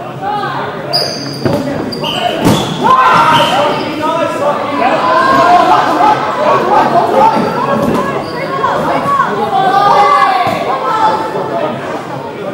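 A ball thumps as players strike it.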